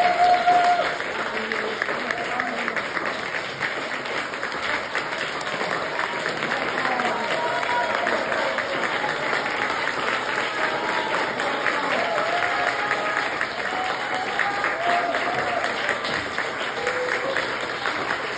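Two acoustic guitars play a lively tune through loudspeakers in a large echoing hall.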